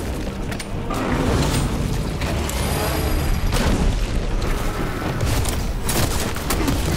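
Heavy blows and crashes land in a fight.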